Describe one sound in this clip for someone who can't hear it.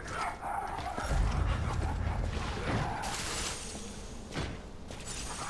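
Magic blasts whoosh and crackle in a game fight.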